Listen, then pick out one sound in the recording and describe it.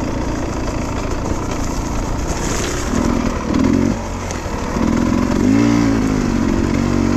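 Tyres crunch over dry pine needles and twigs.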